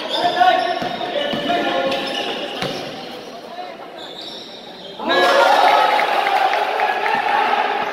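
A basketball bounces on a hard court as a player dribbles.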